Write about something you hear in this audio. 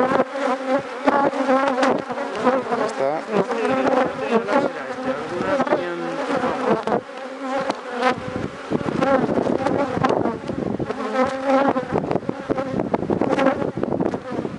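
Bees buzz around the hive.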